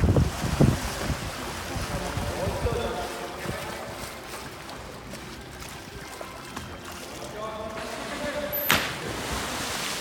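An animal splashes loudly into water nearby.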